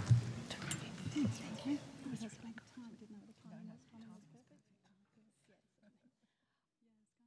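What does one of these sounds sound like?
A crowd of people chat at once in a large echoing hall and slowly fade away.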